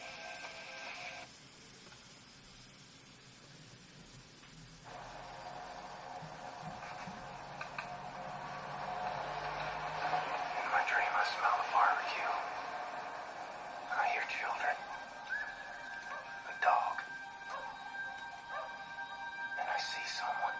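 Game music and sounds play from a small laptop speaker.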